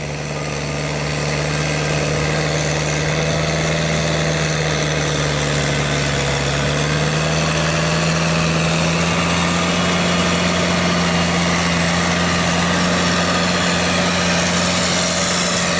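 Tractor wheels churn and squelch through wet mud.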